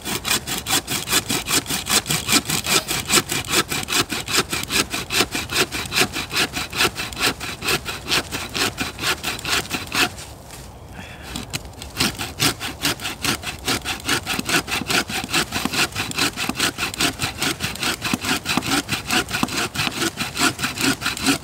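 A bow saw cuts through wood with quick, rhythmic strokes, pausing briefly.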